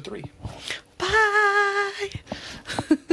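A woman calls out a long, cheerful greeting into a microphone.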